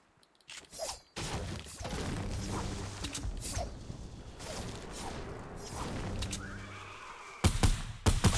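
A pickaxe chops at a tree with repeated thuds.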